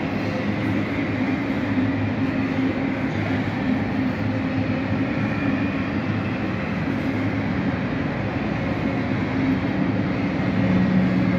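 A freight train rumbles past steadily, its wheels clattering and squealing on the rails.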